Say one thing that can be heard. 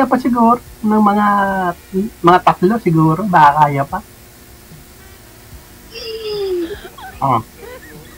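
A middle-aged woman laughs over an online call.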